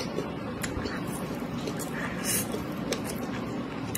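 A woman slurps instant noodles close to a microphone.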